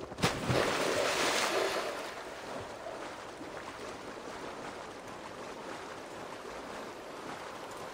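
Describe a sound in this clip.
Water sloshes and swirls around a swimming horse.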